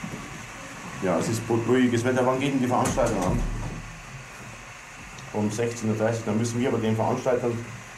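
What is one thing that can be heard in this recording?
A middle-aged man talks calmly into a telephone, close by.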